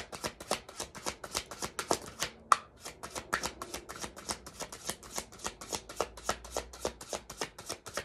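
Fingers rapidly click a small handheld object, close by.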